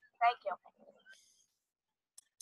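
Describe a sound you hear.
A young girl speaks briefly through a video call.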